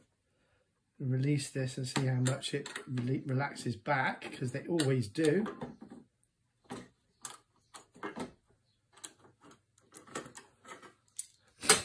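A metal clamp screw squeaks as it is tightened.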